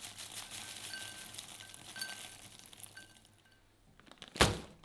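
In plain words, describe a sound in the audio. Dry nuts rattle into a glass bowl.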